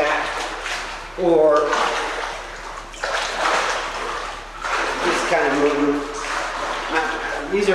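Water splashes and sloshes as a person wades through it.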